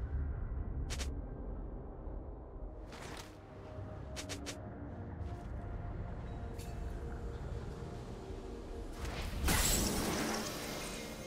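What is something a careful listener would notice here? Game spell effects crack and whoosh in short bursts.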